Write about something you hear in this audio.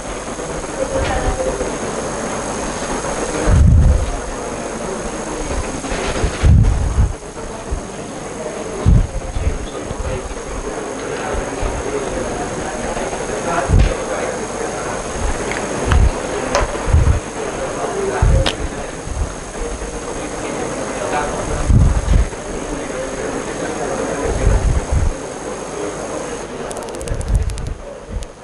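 A man lectures steadily through a close microphone.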